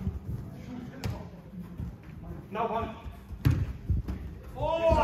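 A ball is kicked with dull thuds on artificial turf.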